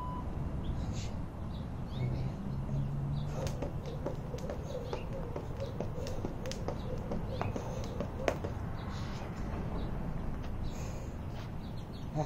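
A jump rope slaps the ground rhythmically.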